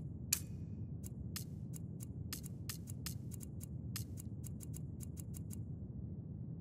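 Game menu clicks tick quickly as entries are scrolled through.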